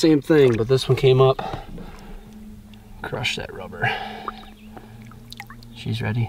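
Water splashes gently as a large fish is moved through it.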